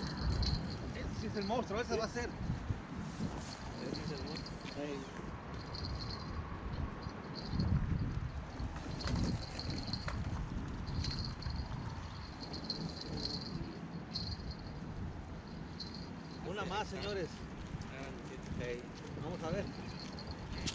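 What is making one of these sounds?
A man talks outdoors.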